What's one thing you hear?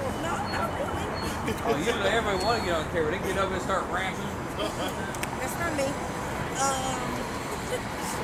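A woman talks and laughs nearby.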